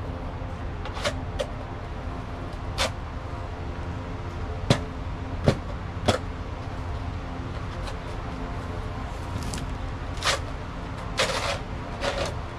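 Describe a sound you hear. A shovel scrapes and digs through wet dirt.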